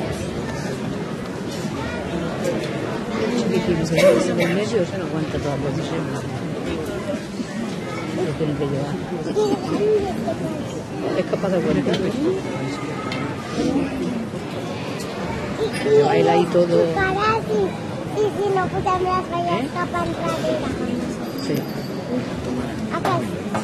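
Footsteps shuffle on paving as a procession walks by.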